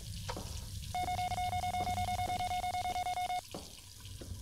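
A handheld electronic device beeps rapidly in a steady stream.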